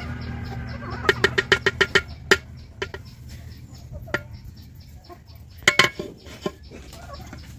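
A ladle clinks against a clay pot.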